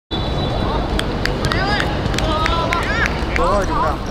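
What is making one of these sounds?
A futsal ball is kicked on a hard court.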